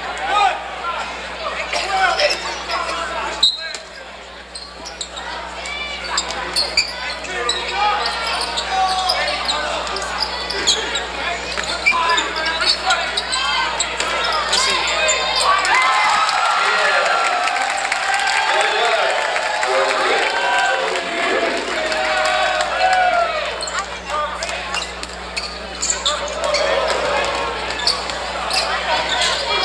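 A crowd of spectators cheers and chatters throughout a large echoing gym.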